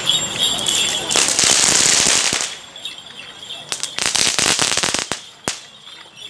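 Firecrackers burst in rapid, crackling volleys.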